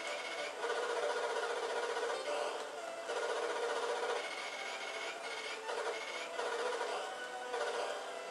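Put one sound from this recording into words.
A video game motorbike engine buzzes steadily.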